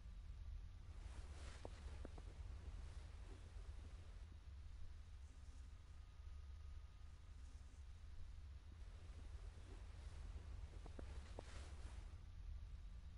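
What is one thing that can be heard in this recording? Cloth rustles softly as a hood is pulled back and put up again.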